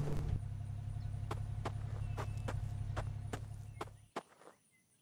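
A jeep's engine idles with a low, steady hum.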